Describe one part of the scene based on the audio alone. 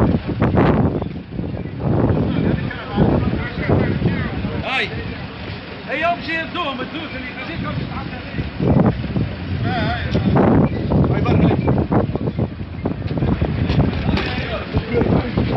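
Several men talk and shout nearby outdoors.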